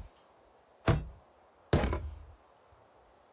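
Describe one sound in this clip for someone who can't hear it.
A hammer strikes wood twice with loud knocks.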